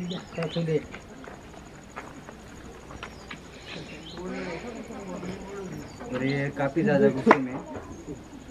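A young man speaks nearby in short bursts.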